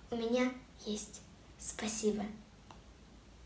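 A young girl speaks brightly and close to a microphone.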